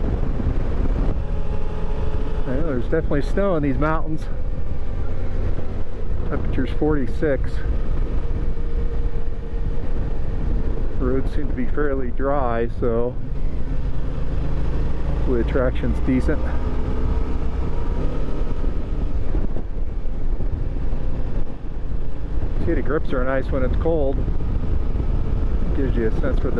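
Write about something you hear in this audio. A motorcycle engine hums steadily at cruising speed.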